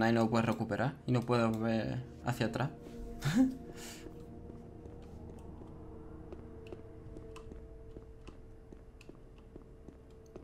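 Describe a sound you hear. Footsteps tap softly on a stone floor.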